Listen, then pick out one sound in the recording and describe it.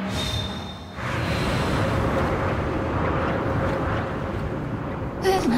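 A deep, rushing magical rumble swells and swirls.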